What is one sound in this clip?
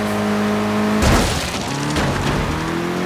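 Tyres screech as a car skids through a turn.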